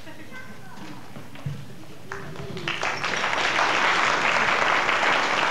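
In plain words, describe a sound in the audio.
A band plays lively folk music in a large hall.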